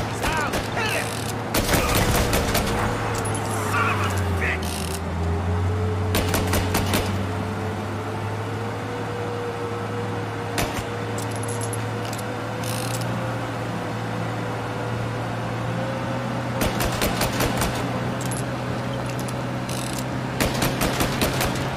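An old car engine hums steadily as the car drives.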